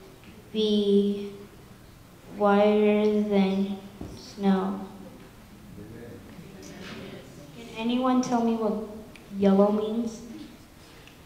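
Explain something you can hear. A woman speaks close by, in a clear, lively voice.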